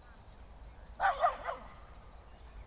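A dog barks sharply a few times nearby.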